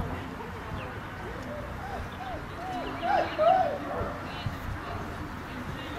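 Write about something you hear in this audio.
A crowd of adult spectators chatters at a distance outdoors.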